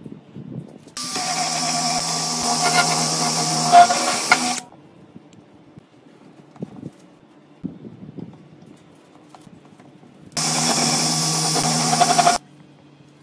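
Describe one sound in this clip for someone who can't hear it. A cordless drill whirs loudly as it spins a brush.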